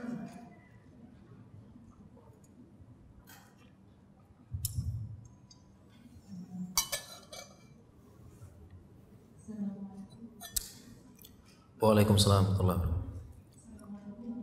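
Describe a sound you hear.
A man sips and swallows water close to a microphone.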